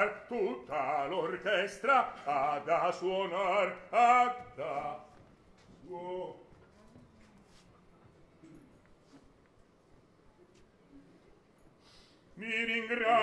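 A man sings loudly in a full, operatic voice.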